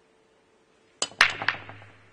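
A cue strikes the cue ball sharply.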